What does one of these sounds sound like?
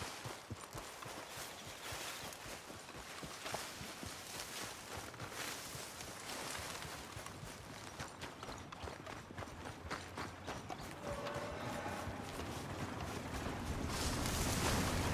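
Footsteps rustle quickly through grass and brush.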